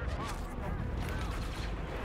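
Blaster shots zap in quick bursts.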